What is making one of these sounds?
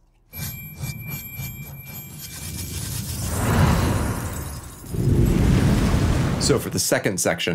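Synthesized music plays with pulsing beats and a swelling rumble.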